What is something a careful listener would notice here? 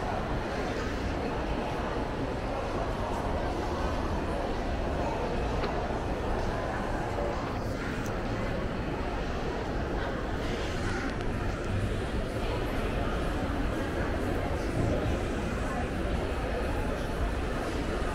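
A steady murmur of distant voices echoes through a large indoor hall.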